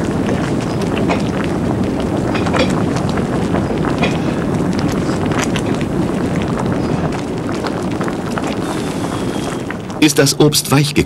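Water boils and bubbles vigorously close by.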